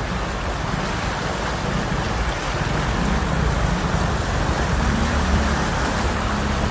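Car tyres churn and splash through deep floodwater.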